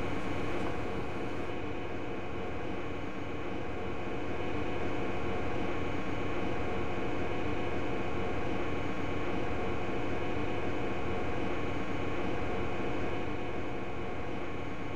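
A stopped train hums steadily with a low electric drone.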